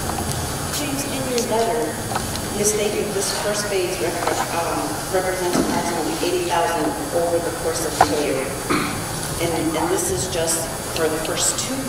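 A middle-aged woman reads out calmly through a microphone.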